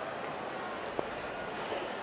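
A cricket bat strikes the ball with a sharp crack.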